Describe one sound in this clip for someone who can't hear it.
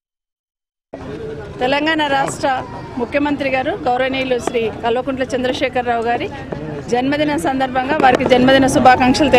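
A woman speaks firmly and clearly into microphones close by.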